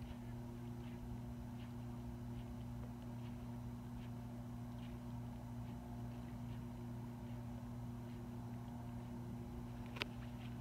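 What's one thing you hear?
Water laps gently close by.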